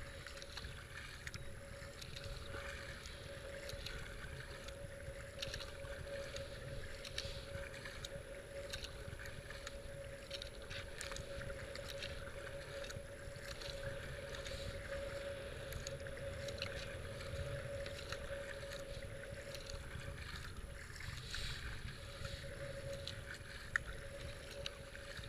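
Water laps and swishes against a kayak's hull.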